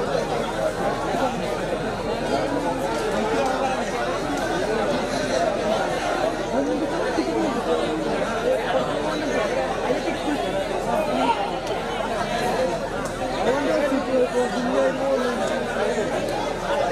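A large crowd of men chatters and shouts loudly.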